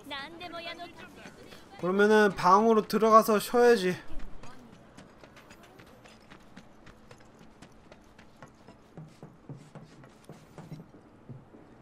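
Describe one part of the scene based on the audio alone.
Footsteps tap softly on the ground.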